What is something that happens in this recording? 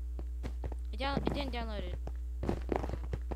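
A zombie groans up close.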